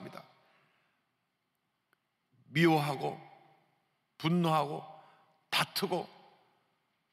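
A middle-aged man speaks in bursts through a microphone, with a reverberant echo in a large hall.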